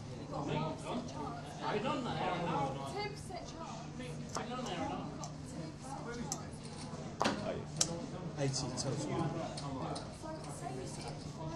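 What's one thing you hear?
Poker chips clack together in a player's hand.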